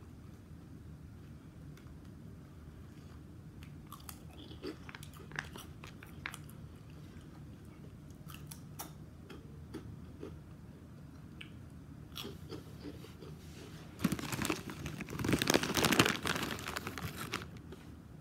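A plastic wrapper crinkles close by.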